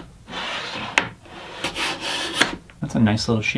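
A hand plane shaves wood in quick scraping strokes.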